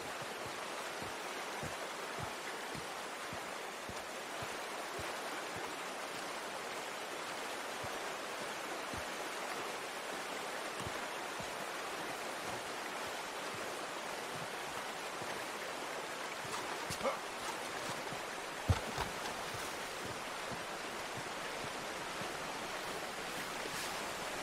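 A strong wind blows steadily outdoors.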